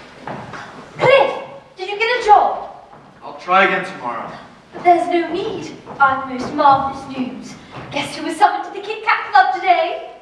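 A young man speaks with animation from a stage in a large hall.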